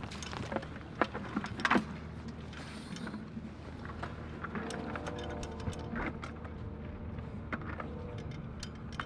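A hollow plastic decoy knocks and clatters in a man's hands.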